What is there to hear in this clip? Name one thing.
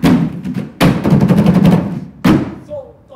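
Plastic cups clatter against a table in a quick rhythm.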